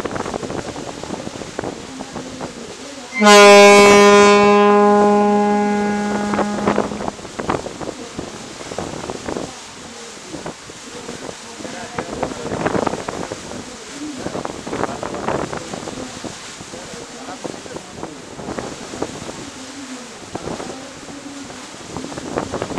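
Water churns and splashes loudly against the hull of a moving boat.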